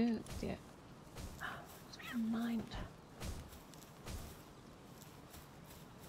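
Footsteps crunch softly on dirt.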